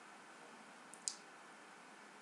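A small wooden doll is set down on a table with a soft knock.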